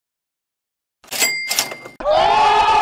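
A bright jingle plays.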